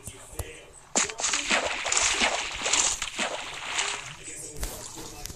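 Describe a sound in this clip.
Water splashes and swishes.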